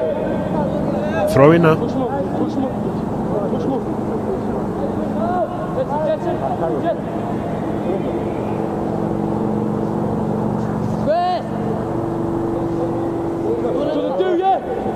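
Young men shout to each other across an open outdoor pitch.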